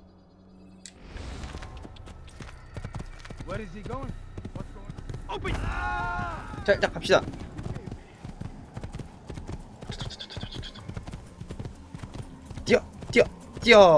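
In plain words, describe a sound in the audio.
A horse's hooves thud as it gallops over dirt.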